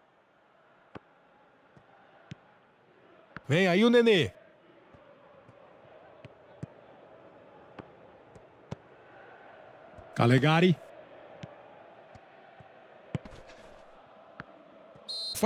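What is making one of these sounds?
A football is kicked with short dull thuds.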